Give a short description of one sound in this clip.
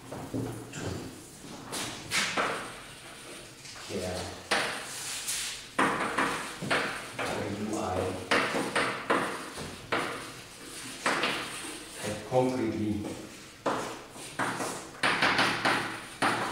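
An elderly man lectures calmly in a room with some echo.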